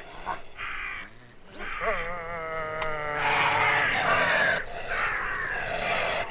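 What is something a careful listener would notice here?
A man groans with strain close by.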